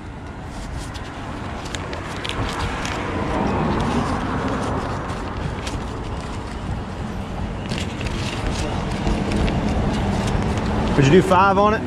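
Paper bills rustle as they are counted by hand.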